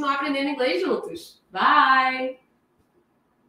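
A woman speaks with animation through a microphone on an online call.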